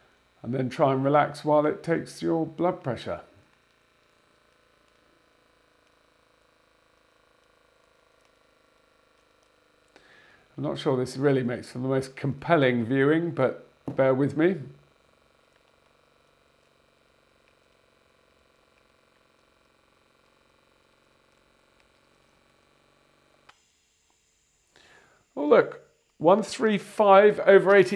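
A middle-aged man speaks calmly and close to a clip-on microphone, in short bursts with pauses.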